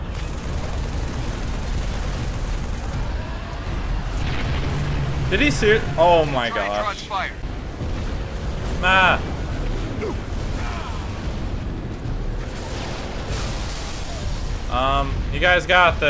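Gunfire rattles steadily amid low rumbling game sounds.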